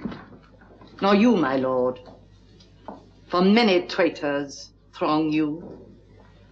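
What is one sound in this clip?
A woman speaks with alarm, close by.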